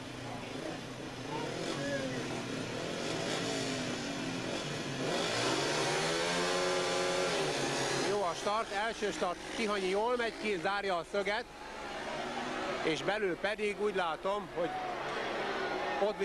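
Motorcycle engines rev loudly and roar away.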